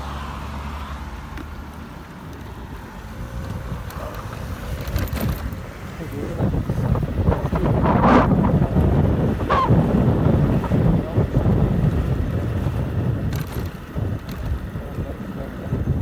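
A motor scooter engine hums as it rides along a street.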